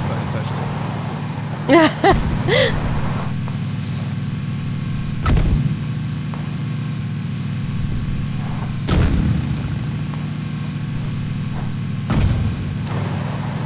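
A vehicle engine hums steadily as it drives.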